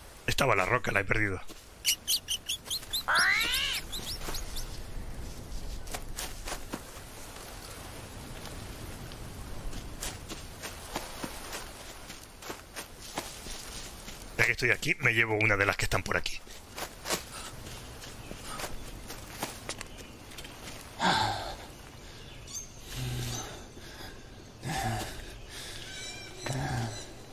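Footsteps tread on a leafy forest floor.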